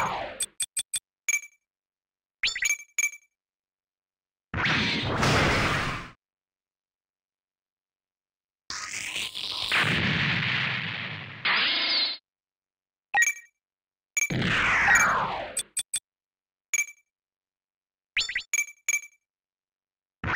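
Short electronic menu beeps chirp repeatedly.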